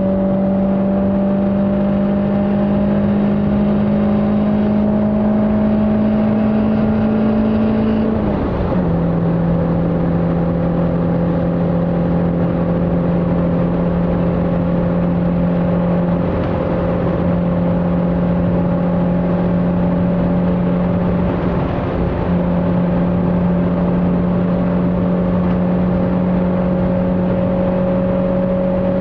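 Wind and road noise roar around a fast-moving car.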